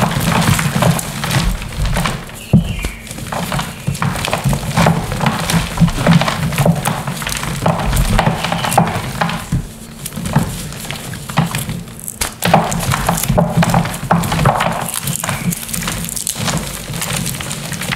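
Gloved hands squeeze and crumble soft wet chalky clumps.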